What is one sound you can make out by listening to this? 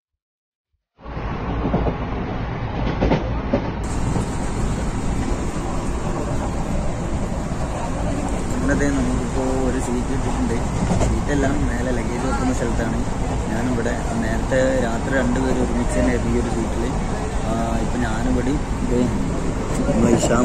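A train rumbles and rattles steadily.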